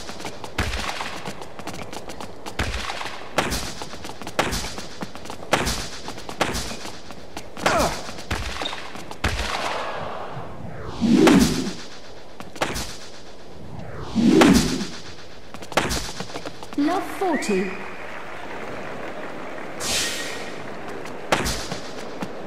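A tennis ball is struck hard with a racket again and again.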